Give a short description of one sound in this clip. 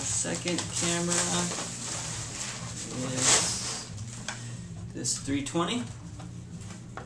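Plastic wrapping crackles and rustles as it is handled.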